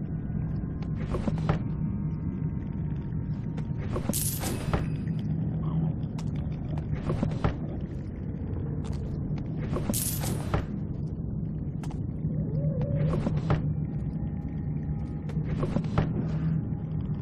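A wooden desk drawer slides open.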